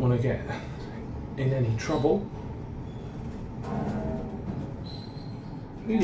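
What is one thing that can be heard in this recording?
Elevator doors slide open.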